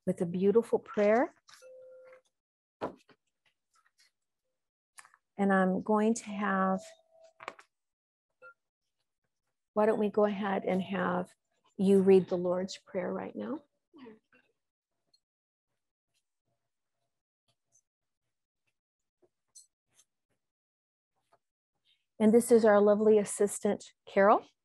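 An older woman speaks calmly in short phrases, close by, with long pauses.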